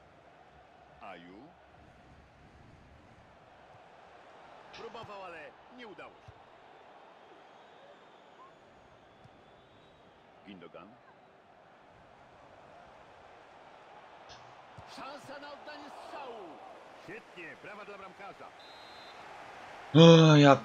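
A young man talks close to a microphone, in short bursts.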